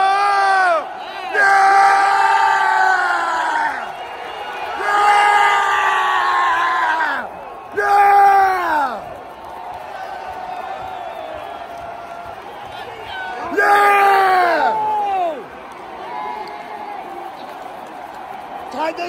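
A large crowd cheers and roars steadily in an open stadium.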